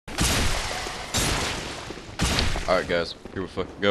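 A heavy blade swishes through the air.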